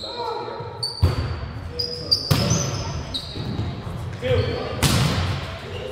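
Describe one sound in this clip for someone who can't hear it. A volleyball is struck with sharp slaps in a large echoing gym.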